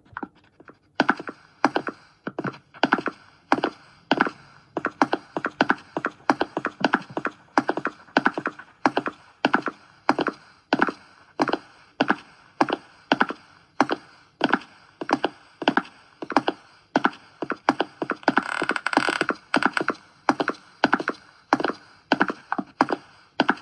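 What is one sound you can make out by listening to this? Footsteps thud at a steady walking pace on a floor.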